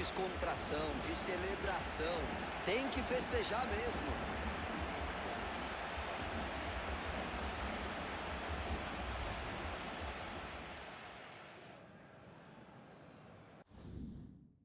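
A large stadium crowd cheers loudly and steadily, then fades away.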